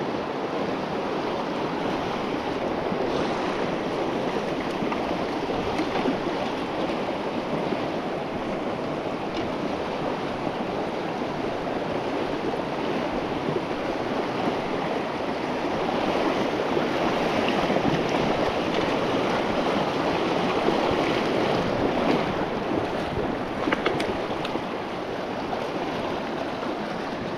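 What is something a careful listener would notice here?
A shallow river rushes and gurgles steadily over rocks close by.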